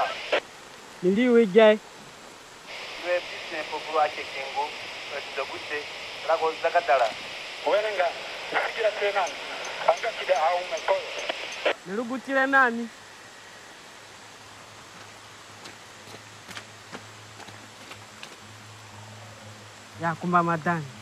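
A man answers in a low, quiet voice close by.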